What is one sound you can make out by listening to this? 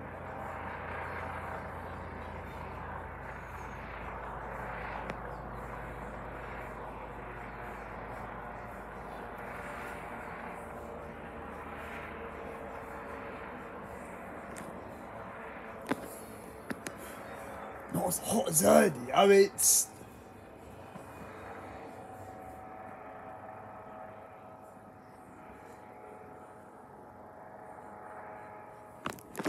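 A helicopter drones steadily overhead, heard from a distance.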